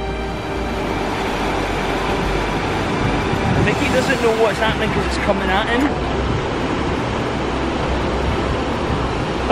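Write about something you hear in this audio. Waves wash and break steadily onto a beach.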